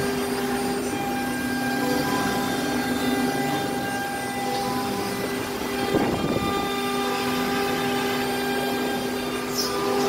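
A machine motor hums steadily.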